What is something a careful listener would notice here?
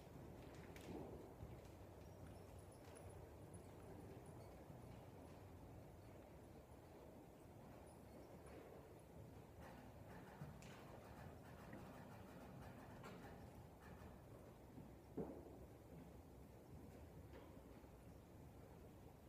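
Horse hooves thud softly on sand far off in a large echoing hall.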